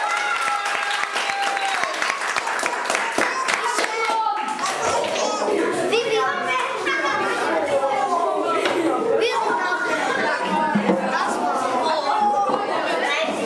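Children shout and chatter excitedly.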